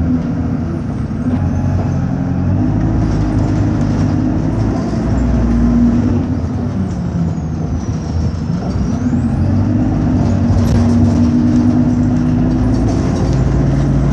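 The bus interior rattles and shakes.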